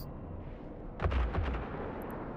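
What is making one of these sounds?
Laser weapons fire in a loud burst.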